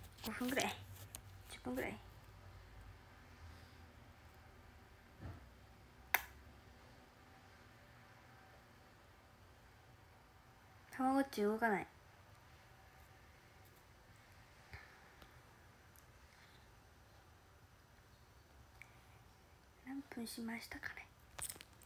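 A young woman speaks softly and casually, close by, in short bursts with long pauses.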